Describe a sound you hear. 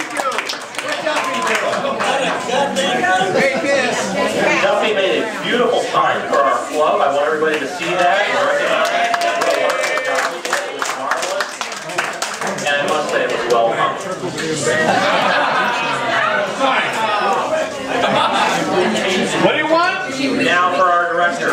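A crowd of men and women chatter under a covered patio.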